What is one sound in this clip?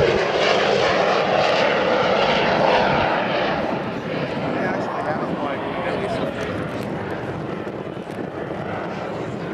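A jet engine roars loudly as a plane flies past low overhead, then fades into the distance.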